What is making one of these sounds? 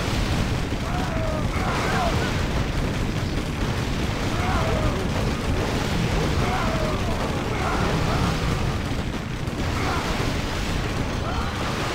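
Swords clash and spells burst in a busy battle.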